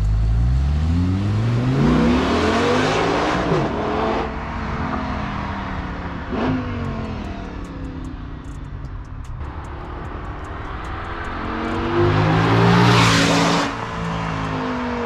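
A sports car engine revs loudly and sharply, rising and falling.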